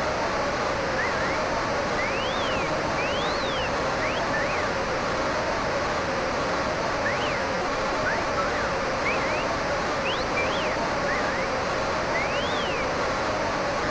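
Spectators whistle in short rising and falling calls.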